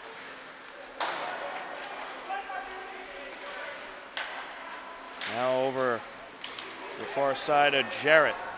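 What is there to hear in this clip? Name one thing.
A hockey stick smacks a puck with a sharp crack.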